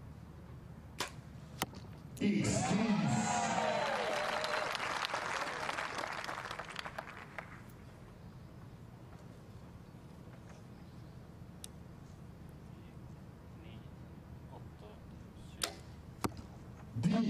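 A bowstring snaps sharply as an arrow is released.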